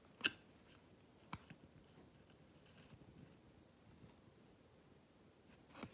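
Small clicks and taps sound as fingers handle the fabric.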